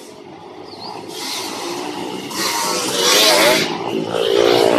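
Dirt bikes approach, engines growing louder.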